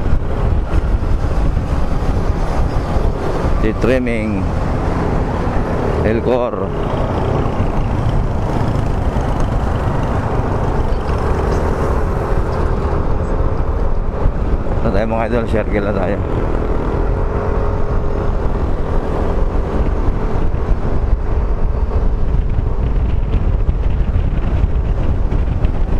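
Wind rumbles and buffets loudly against a moving motorcycle.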